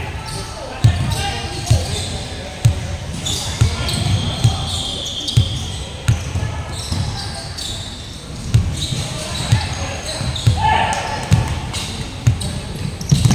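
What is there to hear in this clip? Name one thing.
Basketballs bounce with thuds on a hard floor in a large echoing hall.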